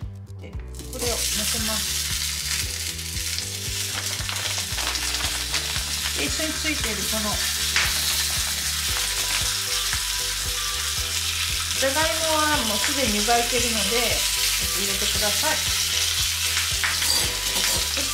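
Meat sizzles loudly in a hot frying pan.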